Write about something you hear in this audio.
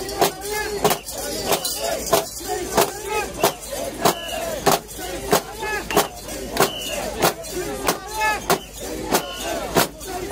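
A crowd of men chants loudly in a steady rhythm outdoors.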